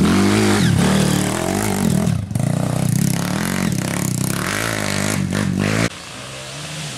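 A dirt bike engine revs loudly up and down.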